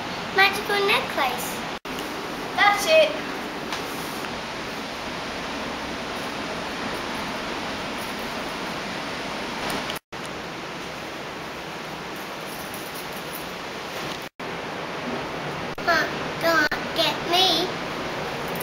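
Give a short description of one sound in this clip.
A young girl talks close by in a lively way.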